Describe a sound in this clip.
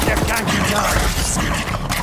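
A blade swishes and slashes.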